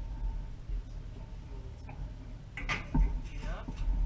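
A metal stove door clanks shut.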